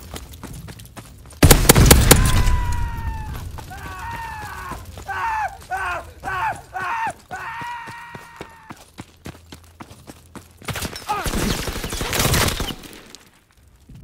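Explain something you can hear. Footsteps crunch over rubble.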